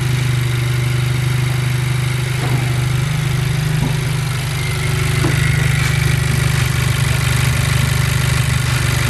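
A car engine idles steadily with a low, even hum close by.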